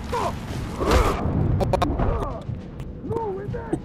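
A burning arrow strikes and bursts into flame with a whoosh.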